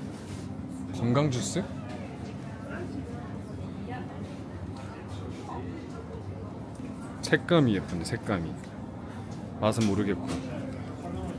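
A young man speaks casually close by, in short bursts.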